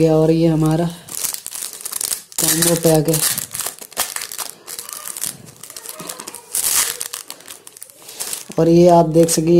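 Plastic wrapping crinkles and rustles under handling.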